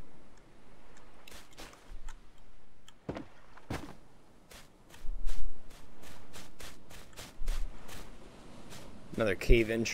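Footsteps tap steadily on dry ground.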